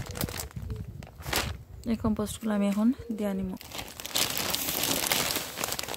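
A plastic bag crinkles and rustles.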